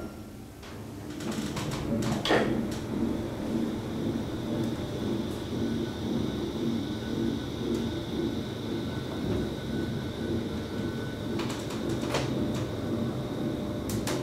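A traction elevator hums as it travels down.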